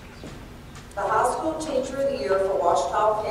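A woman speaks calmly through a loudspeaker in a large echoing hall.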